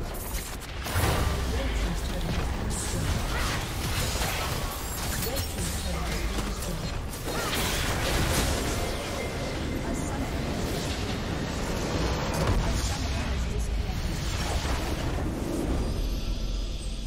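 Game spells and weapon hits crackle and boom in a busy fight.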